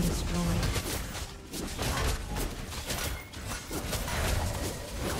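Video game spells and attacks crackle and burst in quick succession.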